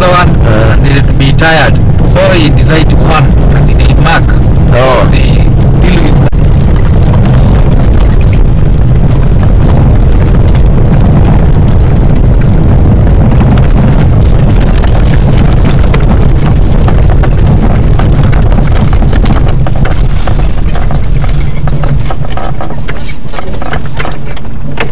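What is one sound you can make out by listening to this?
A vehicle engine rumbles loudly while driving.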